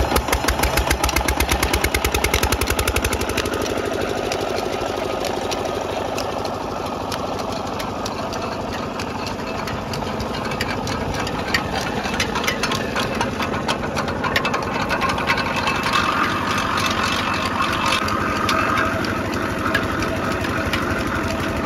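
A small diesel engine chugs rapidly up close.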